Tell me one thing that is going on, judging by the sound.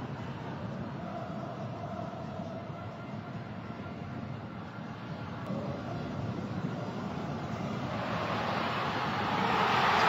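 A stadium crowd roars steadily and swells louder toward the end.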